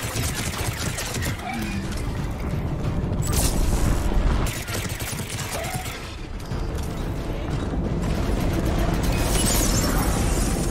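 An energy blast bursts with a crackling burst.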